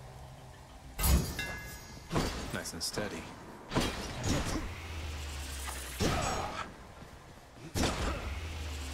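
Sharp magical blasts and strikes burst out in quick succession.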